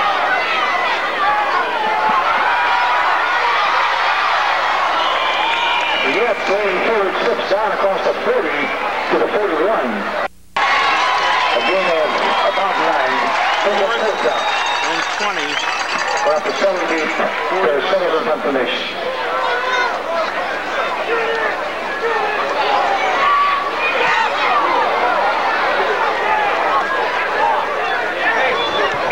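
A large crowd of spectators chatters and cheers outdoors.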